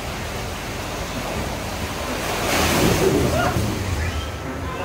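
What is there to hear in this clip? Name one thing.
Water rushes and splashes as a raft slides down a chute.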